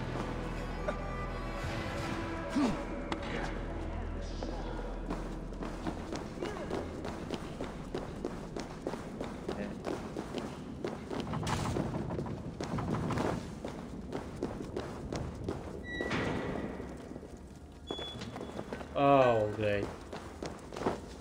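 Footsteps tread softly on a stone floor.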